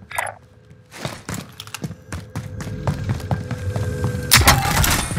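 Footsteps tap across a hard floor indoors.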